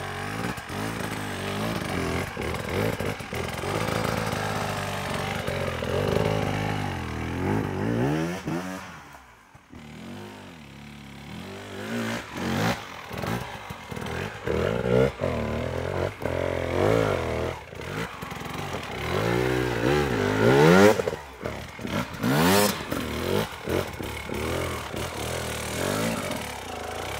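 An enduro motorcycle engine revs hard, rising and falling, as the bike climbs a steep dirt slope.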